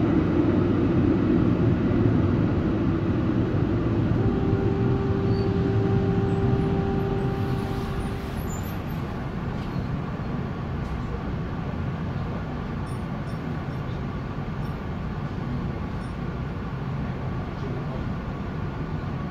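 A tram rolls along the tracks with a steady low rumble.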